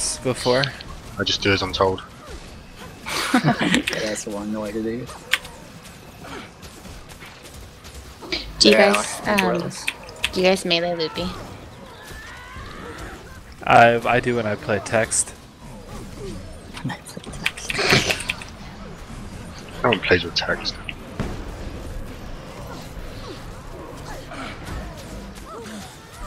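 Magic spells burst and whoosh during a fight.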